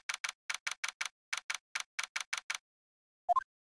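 Short electronic blips tick rapidly in an even rhythm.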